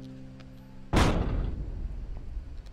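A cannon fires with a deep boom that fades away.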